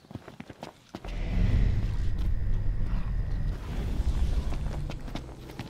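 A magical spell crackles and hums with a shimmering whoosh.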